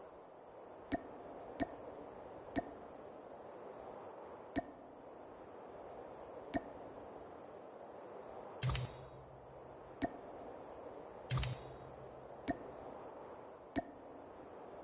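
Short game menu clicks sound now and then.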